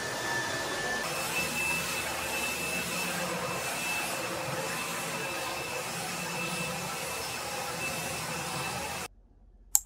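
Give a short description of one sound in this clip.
A handheld vacuum cleaner hums steadily.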